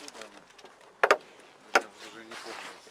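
A car bonnet clunks as it is lifted open.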